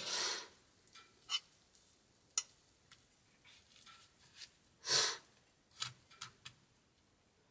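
A metal spatula scrapes food from a frying pan.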